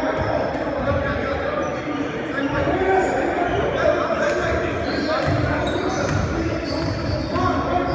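A basketball bounces on the floor with echoing thumps.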